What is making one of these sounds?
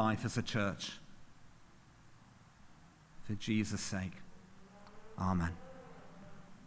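A man speaks slowly and calmly into a microphone, with long pauses, in a reverberant hall.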